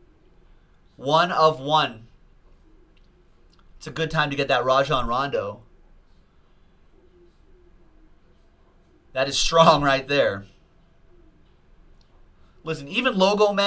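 A man talks with excitement into a close microphone.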